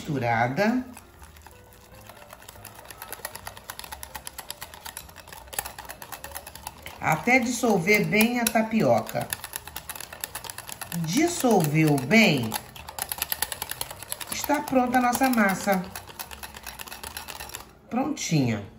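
A whisk clinks rapidly against a glass bowl.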